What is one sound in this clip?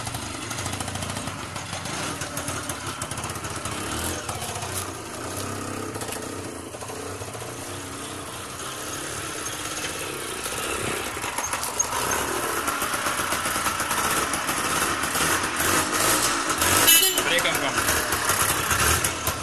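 An auto-rickshaw engine rattles and putters close by.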